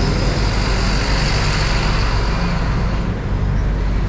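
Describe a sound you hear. A bus engine rumbles close by and pulls away.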